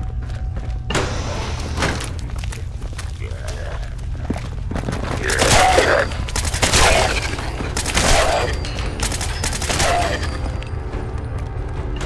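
A rifle fires in rapid bursts with loud bangs.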